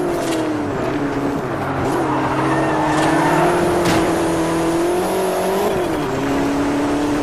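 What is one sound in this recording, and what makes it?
A racing car engine roars steadily, shifting pitch as it changes gear.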